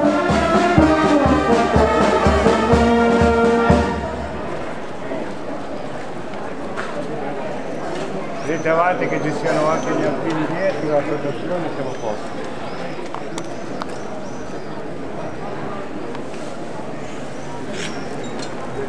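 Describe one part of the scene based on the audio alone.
Children and adults chatter nearby outdoors.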